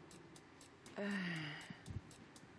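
A woman sighs briefly.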